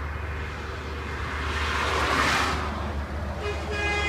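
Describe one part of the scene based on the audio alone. A car passes by on the road.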